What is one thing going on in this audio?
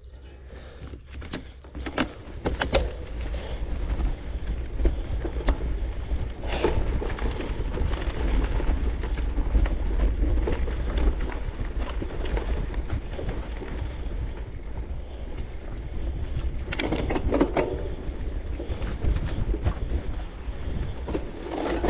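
Bicycle tyres roll and rattle over a bumpy dirt track.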